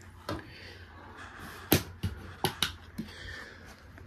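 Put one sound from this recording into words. A light switch clicks.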